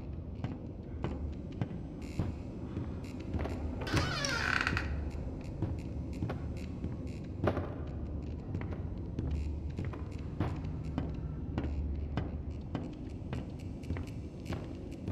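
Footsteps thud steadily on wooden floorboards.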